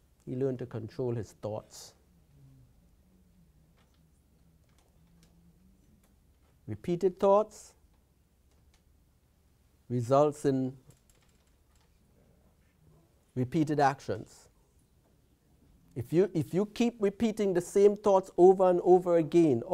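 A middle-aged man speaks calmly into a clip-on microphone, in short phrases with pauses.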